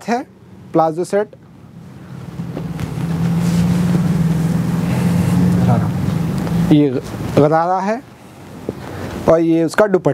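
Fabric rustles as cloth is unfolded.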